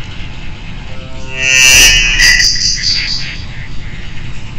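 A dramatic electronic musical sting plays and fades.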